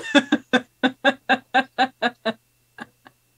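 A woman laughs heartily over an online call.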